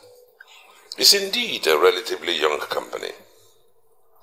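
An elderly man speaks earnestly, close by.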